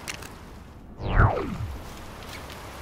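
A deep whoosh sweeps quickly downward.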